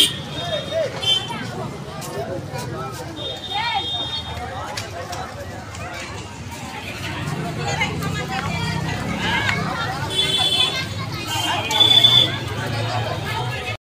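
A crowd of men and boys chatter nearby outdoors.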